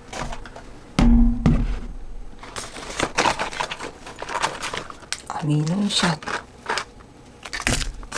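Fabric rustles as items are packed into a bag.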